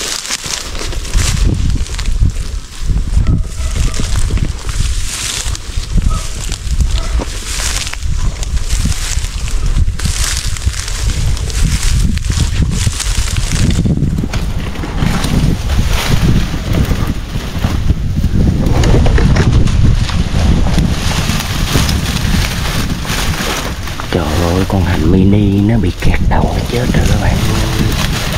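Tall grass and leaves rustle and swish as someone pushes through them.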